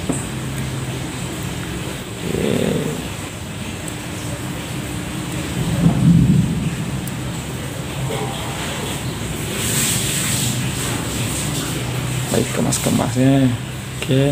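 Metal pliers click and squeeze against a small plastic cap.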